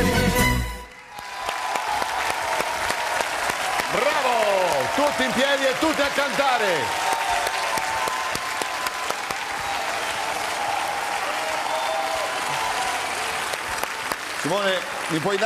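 A large audience claps and cheers in a big hall.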